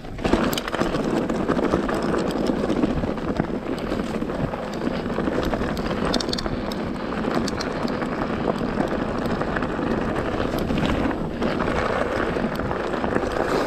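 Mountain bike tyres crunch and rattle over a rocky dirt trail.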